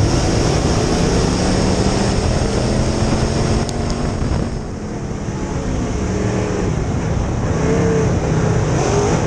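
A dirt late model race car's V8 engine roars at full throttle, heard from inside the cockpit.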